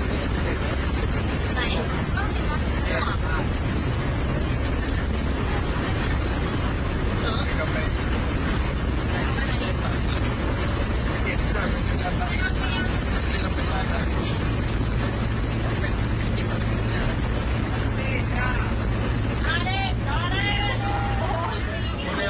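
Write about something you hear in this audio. A bus engine rumbles steadily inside the cabin.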